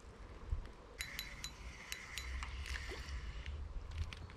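A fishing reel whirs as its handle is turned.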